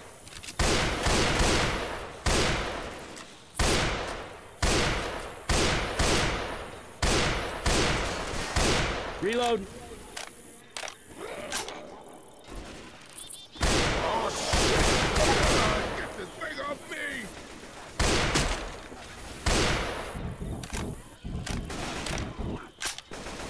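A rifle fires loud, booming shots again and again, each echoing away.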